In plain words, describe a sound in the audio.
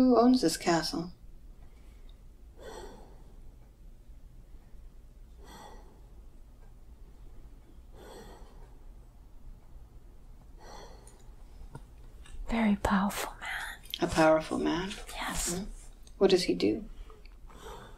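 An elderly woman moans and groans in pain close by.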